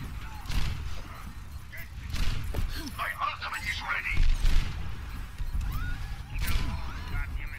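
A sniper rifle fires sharp single shots.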